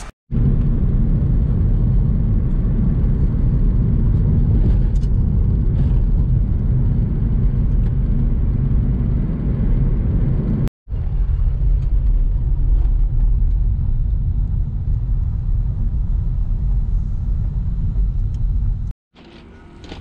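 A car engine hums with a low road rumble while driving.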